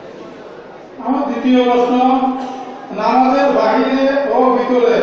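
A man speaks into a microphone, heard through loudspeakers, in a slow, chanting preaching style.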